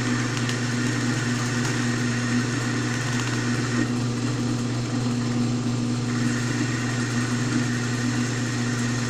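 A metal lathe hums steadily as its chuck spins.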